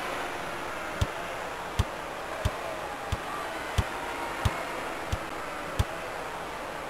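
A basketball bounces on a wooden court in steady thumps.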